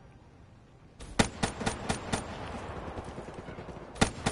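A fiery explosion booms and rumbles.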